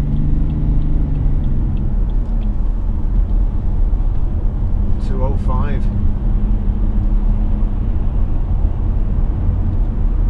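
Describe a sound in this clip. Tyres roar steadily on a road.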